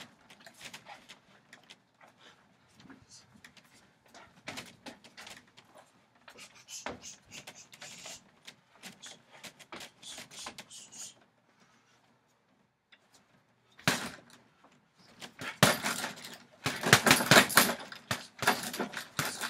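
Gloved punches thud against a heavy punching bag.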